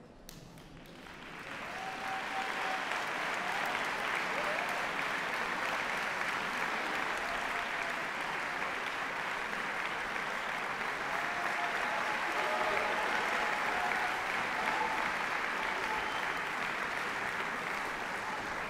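An orchestra plays loudly in a large hall.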